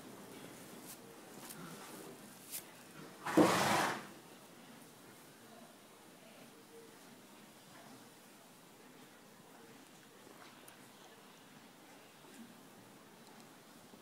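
Hands softly rustle through a horse's mane.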